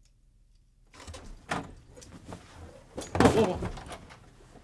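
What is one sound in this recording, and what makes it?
A man rushes past close by, his clothes rustling.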